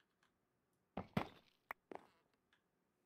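A wooden block cracks and breaks apart.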